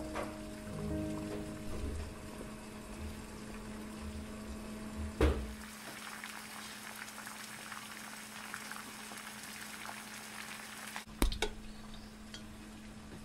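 Water boils and bubbles in a pot.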